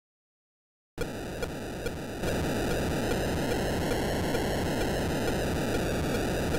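Short electronic blips from an old video game sound at a regular beat.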